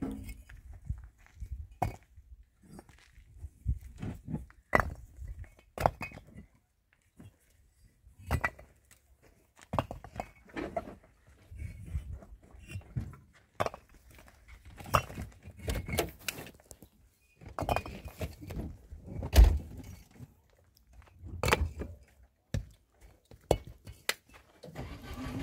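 Stone blocks knock and scrape against each other as they are unloaded.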